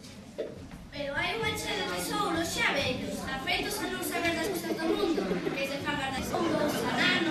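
A young girl speaks loudly into a microphone in a hall.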